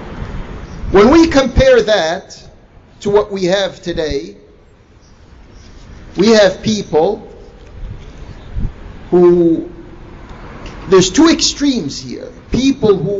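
A man speaks into a microphone in slow, measured phrases, with pauses between them.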